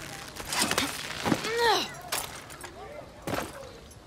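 A heavy thud of someone landing on a hard roof.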